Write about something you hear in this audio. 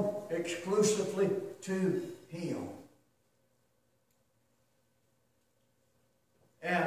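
A middle-aged man speaks steadily through a microphone in a large room with slight echo.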